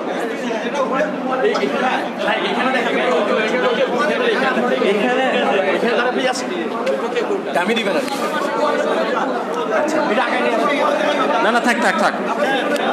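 A crowd of men and boys chatters loudly all around in an echoing room.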